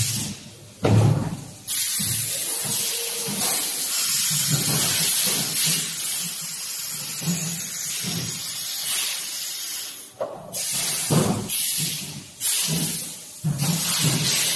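A production machine hums and clatters steadily.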